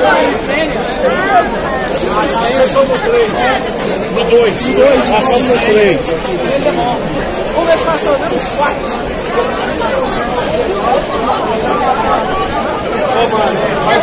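A large crowd of men chants and sings loudly outdoors.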